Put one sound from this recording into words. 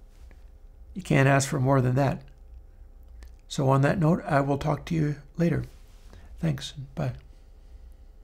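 A middle-aged man speaks calmly and close into a microphone.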